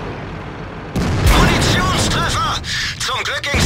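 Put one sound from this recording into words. A tank cannon fires with a loud boom and rings out.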